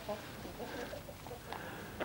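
Hens cluck nearby.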